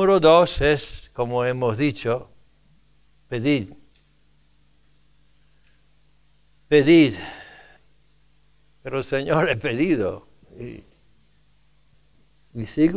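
An elderly man speaks forcefully into a microphone, in bursts with long pauses.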